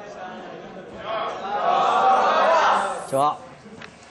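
A group of teenage boys call out a greeting loudly in unison.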